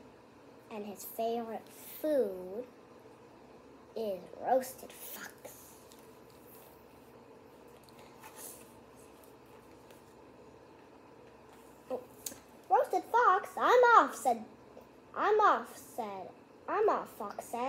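A young girl reads aloud with animation, close by.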